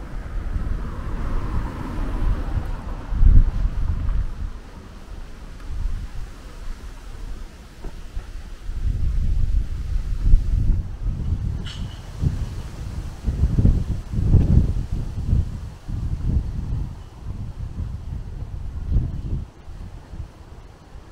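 Wind gusts and buffets outdoors.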